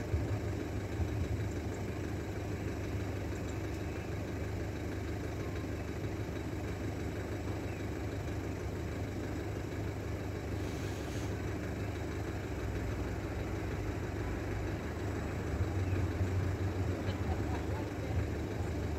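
A train rumbles past at a level crossing.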